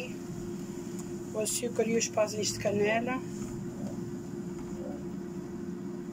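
A spatula stirs softly through rice and water in a pan.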